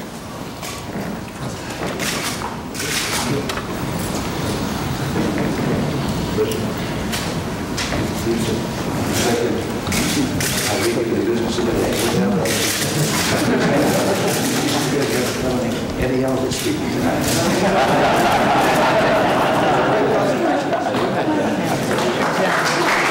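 Several men chat and laugh nearby.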